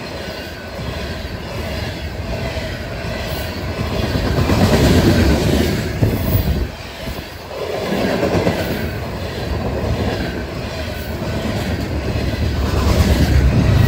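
A fast freight train of covered hopper cars clatters and rumbles past on the rails.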